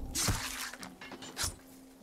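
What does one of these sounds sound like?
A blade stabs into flesh with a wet thud.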